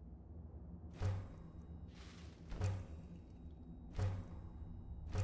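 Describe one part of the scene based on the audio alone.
Metal clangs sharply several times.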